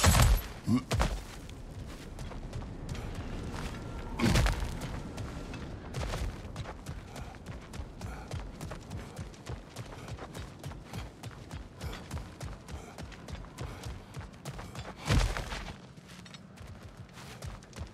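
Footsteps crunch quickly over stone and gravel.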